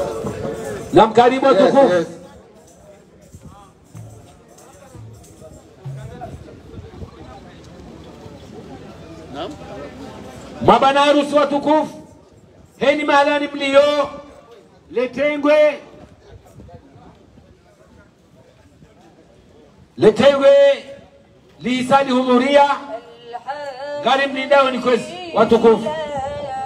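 A man chants loudly through a loudspeaker outdoors, in long sung phrases.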